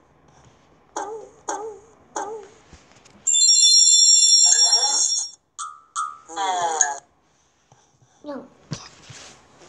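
A young boy speaks in short calls over an online call.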